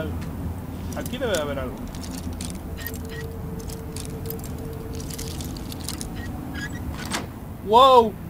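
A lock pick scrapes and clicks inside a metal lock.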